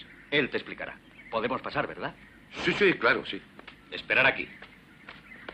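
A man speaks forcefully, close by.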